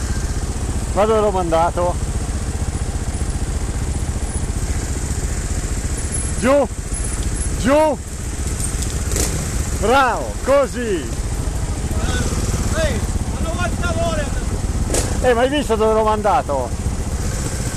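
Motorbike engines rev sharply in short bursts nearby.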